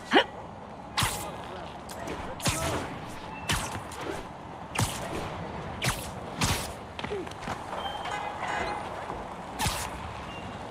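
Webs shoot out with sharp thwips, again and again.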